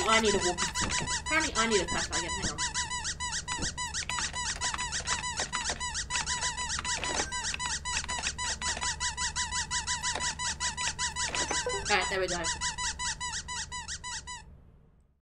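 A computer terminal beeps rapidly as text is typed.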